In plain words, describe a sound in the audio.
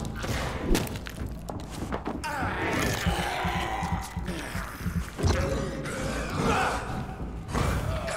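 Fists thud in a brawl at close range.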